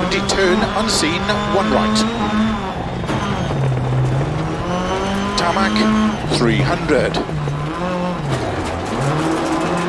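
Tyres crunch over loose gravel.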